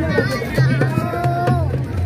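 A young boy shouts with excitement.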